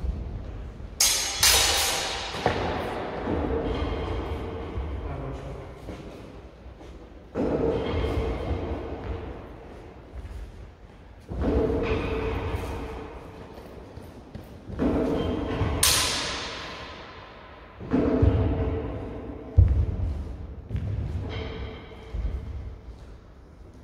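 Wooden practice swords clack together in a large echoing hall.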